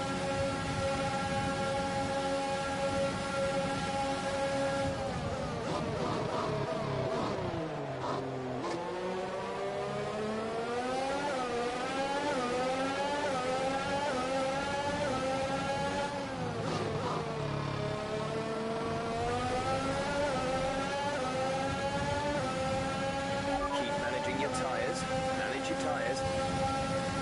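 A racing car engine screams at high revs, dropping as the car brakes and rising again as it speeds up through the gears.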